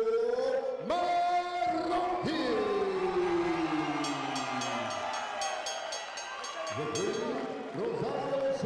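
A man announces loudly through a loudspeaker, drawing out his words in an echoing hall.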